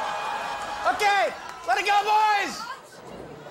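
A man yells out loudly.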